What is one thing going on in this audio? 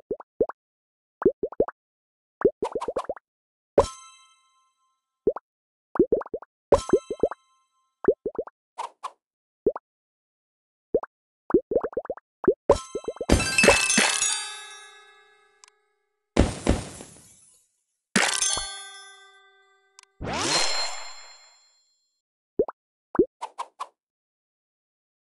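Short soft pops sound as game pieces snap into place.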